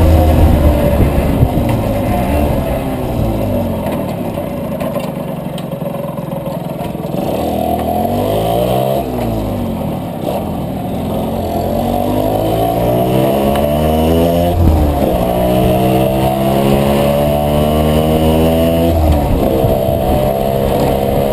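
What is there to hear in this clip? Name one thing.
A motorcycle engine rumbles close by, its pitch rising and falling as it speeds up and slows down.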